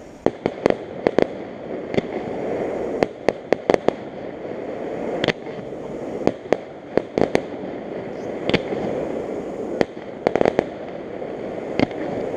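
Fireworks pop and crackle in the distance, outdoors at night.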